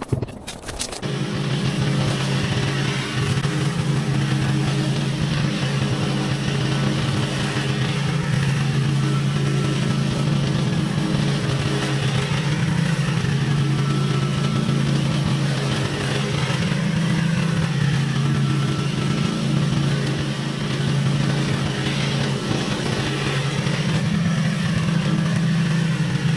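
A mower engine drones steadily close by, rising and dipping as it mows.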